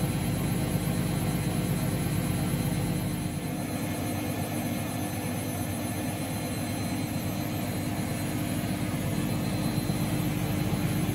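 A washing machine hums and whirs steadily as its drum turns.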